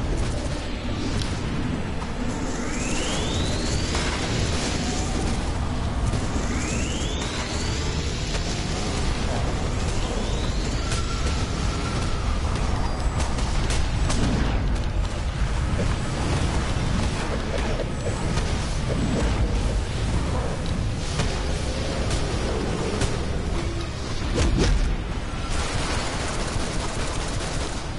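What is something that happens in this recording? Energy blasts and explosions crackle and boom in a fight.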